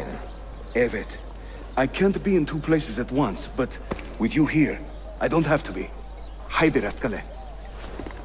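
Two men talk calmly, close by.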